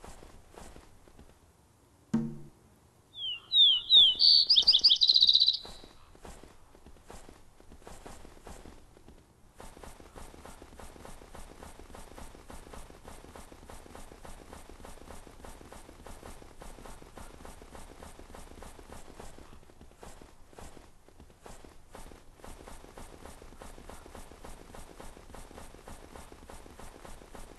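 Hooves thud steadily as a moose walks over rocky ground.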